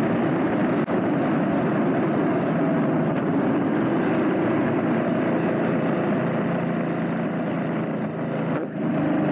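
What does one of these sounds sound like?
A motorcycle engine hums steadily at low speed.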